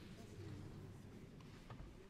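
A piano plays softly.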